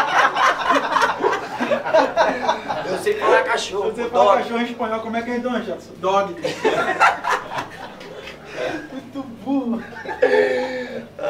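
Several young men talk and laugh loudly nearby in a room with a slight echo.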